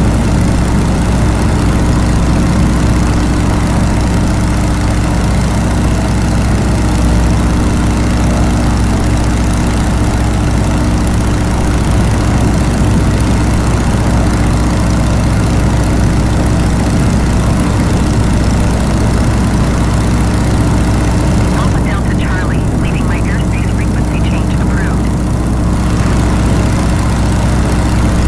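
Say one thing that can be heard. Wind rushes past an open cockpit.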